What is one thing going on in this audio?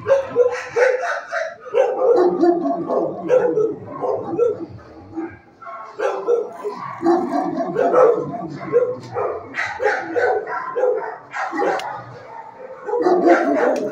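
A dog crunches dry kibble up close.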